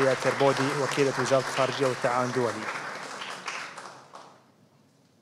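People clap their hands in applause.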